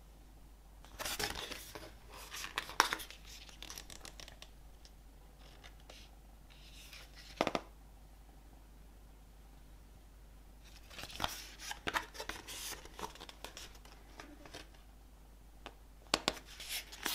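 Glossy paper pages rustle and flip as a booklet is leafed through.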